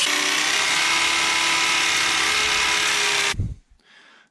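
A cordless drill whirs loudly and steadily.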